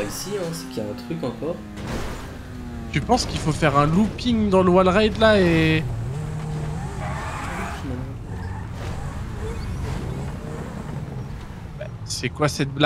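A sports car engine revs and roars.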